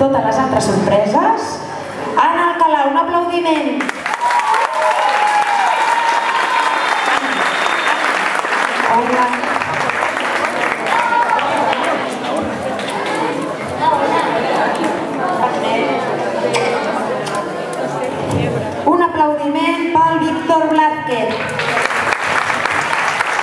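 Children and adults chatter in a crowd.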